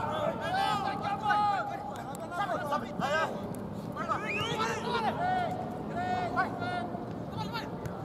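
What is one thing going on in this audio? A football is kicked on grass.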